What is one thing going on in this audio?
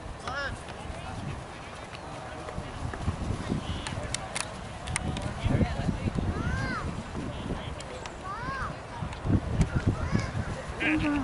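Children shout across an open field.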